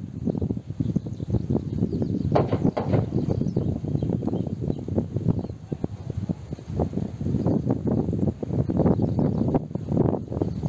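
Wind blows and buffets outdoors.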